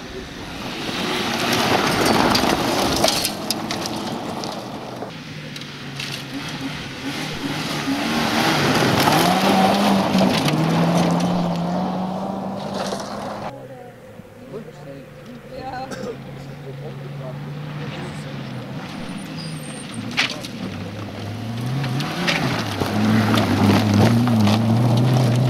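Gravel sprays and crackles under spinning tyres.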